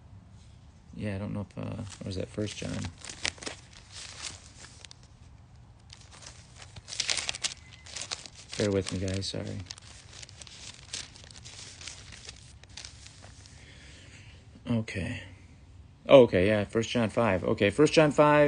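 A middle-aged man speaks calmly and close to a phone microphone.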